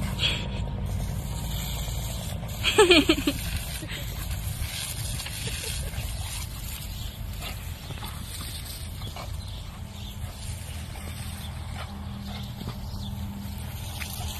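A dog splashes and bounds through a spray of water.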